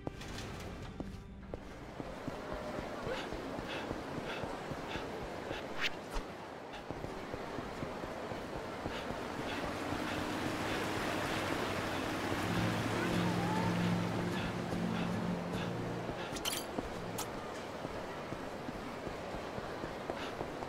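A busy street murmurs with distant crowd chatter.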